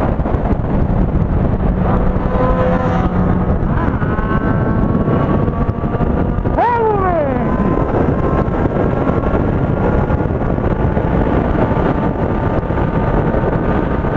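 A motorcycle engine hums steadily at speed.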